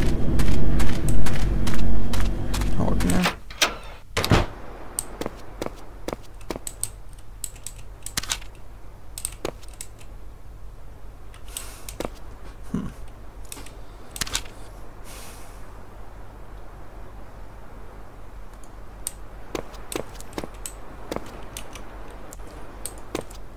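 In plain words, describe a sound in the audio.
Footsteps tread on a hard floor at a steady walking pace.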